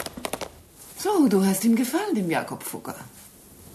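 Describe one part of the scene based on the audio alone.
An older woman speaks warmly nearby.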